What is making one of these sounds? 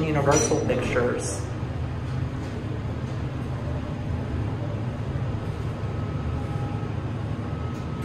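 An elevator car hums steadily as it travels.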